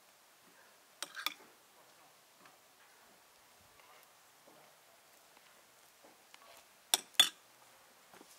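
Crusty bread crackles as hands pull it open.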